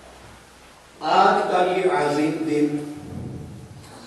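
An elderly man speaks into a microphone in a slow, chanting voice.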